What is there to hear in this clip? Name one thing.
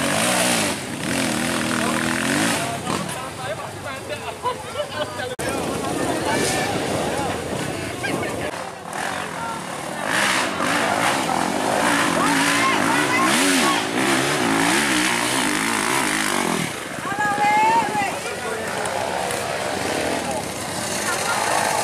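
Dirt bike engines rev loudly, climbing a muddy slope.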